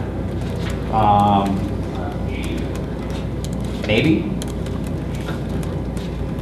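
Laptop keys click softly with typing.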